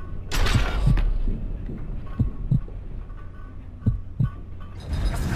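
Pistol shots crack in a short burst.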